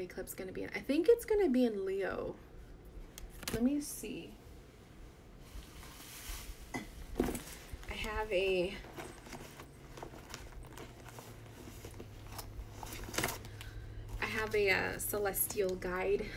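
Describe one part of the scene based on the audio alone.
A woman talks casually and close up.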